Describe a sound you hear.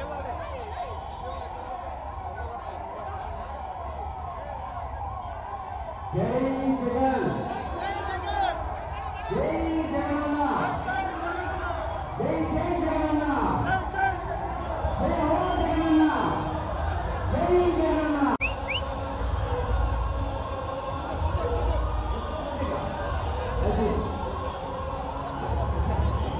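A crowd of men chants slogans loudly in unison outdoors.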